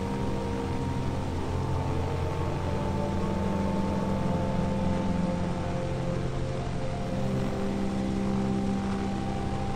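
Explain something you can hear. A propeller engine drones steadily.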